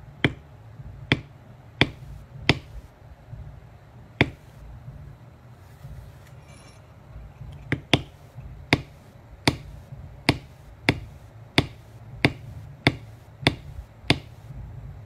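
A mallet taps a metal tool with sharp, steady knocks.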